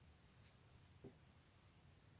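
A marker is set down on a hard surface with a soft tap.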